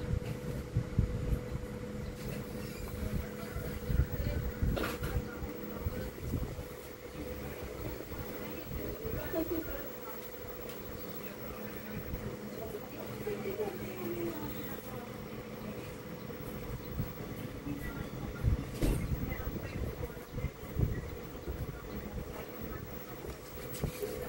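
Tweezers tap and scrape lightly on a circuit board.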